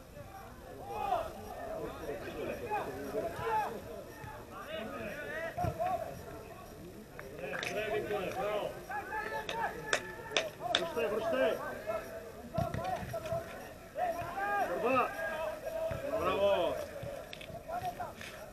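Men shout and call to each other outdoors across an open field.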